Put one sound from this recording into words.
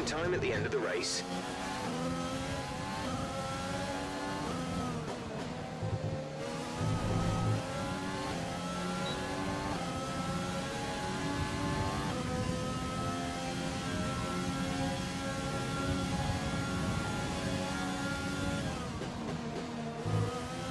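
A racing car engine screams at high revs, rising through the gears and dropping as it brakes.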